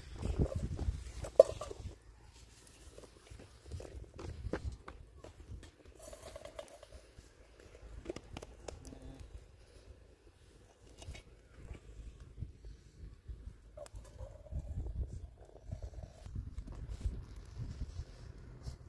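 Metal and glass clink as a kettle and cups are handled.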